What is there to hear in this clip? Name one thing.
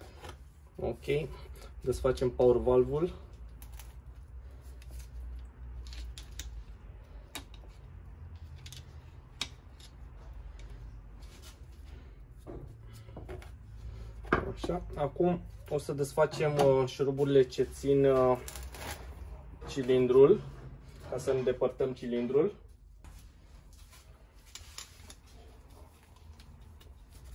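Metal parts clink lightly as they are handled.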